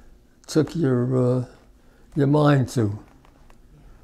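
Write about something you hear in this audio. An elderly man speaks slowly and calmly into a close microphone.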